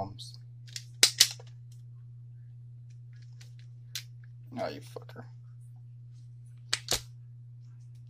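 A wire stripper snaps shut with sharp clicks.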